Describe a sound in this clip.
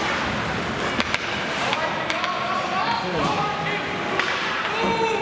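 Hockey sticks clack against the puck.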